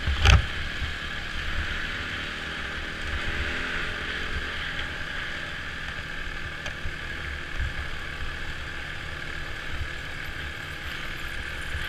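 A dirt bike engine drones steadily up close.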